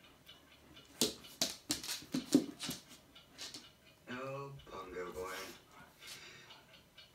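A dog knocks a rubber toy about on a hard floor.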